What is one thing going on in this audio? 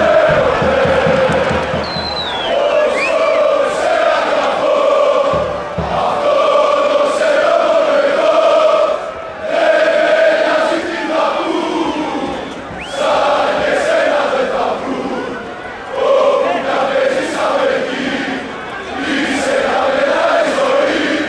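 A large crowd of fans chants loudly in unison outdoors.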